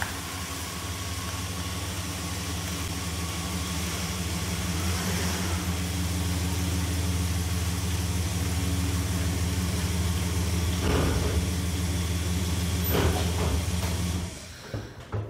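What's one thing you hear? A pickup truck's engine rumbles steadily as it rolls in slowly.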